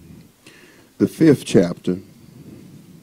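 A man speaks briefly and loudly into a microphone in an echoing room.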